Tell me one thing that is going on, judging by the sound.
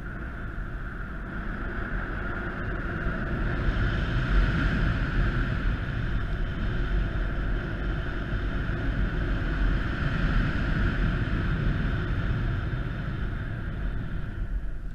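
Wind rushes loudly past outdoors throughout.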